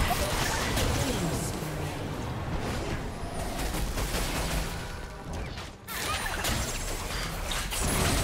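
Magic spells crackle and whoosh in a fast video game battle.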